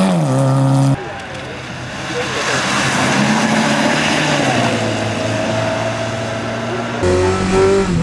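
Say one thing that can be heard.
Tyres hiss and splash on a wet road.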